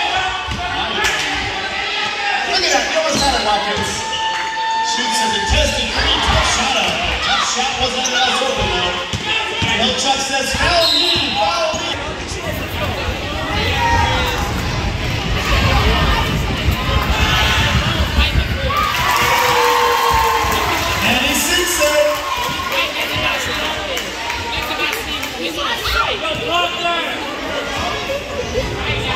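A crowd of spectators chatters in an echoing hall.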